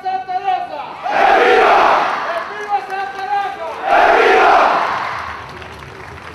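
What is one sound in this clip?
A crowd outdoors claps and cheers in bursts.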